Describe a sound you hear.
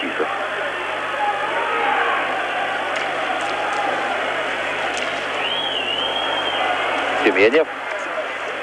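Ice skates scrape and hiss on the ice.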